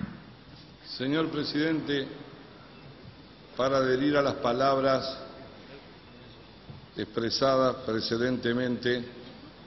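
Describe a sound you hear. A man speaks steadily through a microphone in a large echoing hall, in short bursts with pauses.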